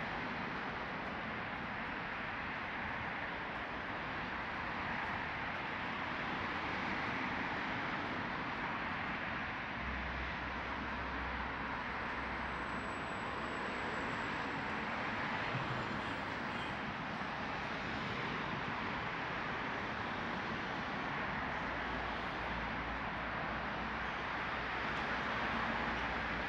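Traffic hums steadily along a nearby road.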